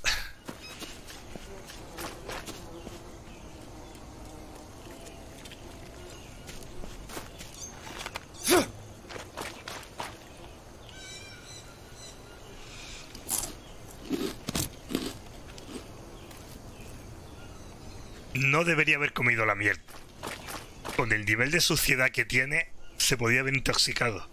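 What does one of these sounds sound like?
Footsteps rustle through leaves and undergrowth.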